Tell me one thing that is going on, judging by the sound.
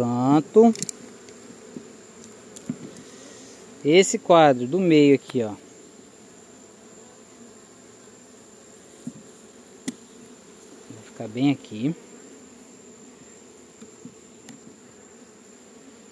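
Bees buzz steadily up close.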